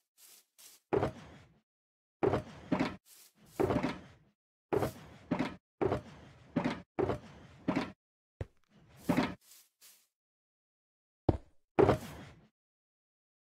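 Blocks thud down one after another as they are placed.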